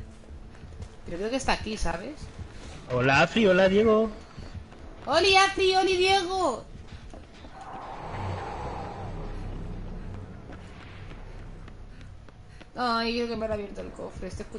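A young woman speaks expressively into a close microphone.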